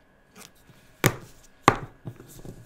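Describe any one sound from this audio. A marker cap clicks as it is pulled off.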